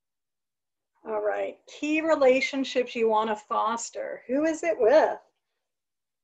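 A woman speaks warmly through an online call.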